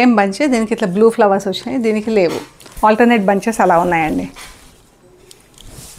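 Fabric rustles as a woman spreads it out.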